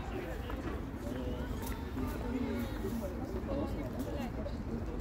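Young men shout and call to each other in the distance outdoors.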